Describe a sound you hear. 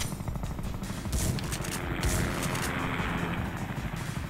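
A shotgun fires with loud booms.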